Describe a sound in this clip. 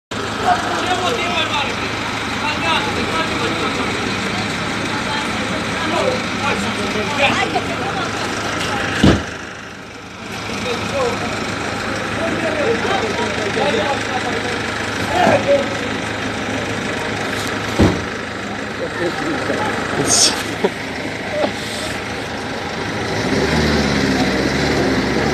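Street traffic hums in the background.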